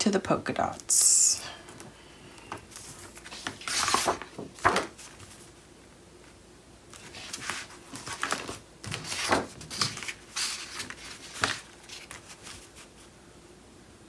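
Paper rustles and slides as sheets are moved and pressed down by hand.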